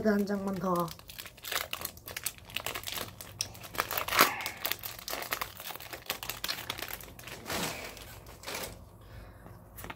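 Cardboard packaging rustles and crinkles as it is torn open.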